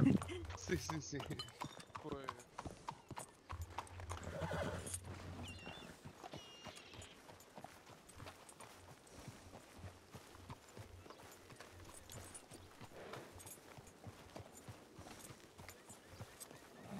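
Footsteps crunch steadily on dirt.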